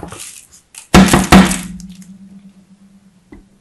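A metal grater knocks down on a hard surface and rings briefly.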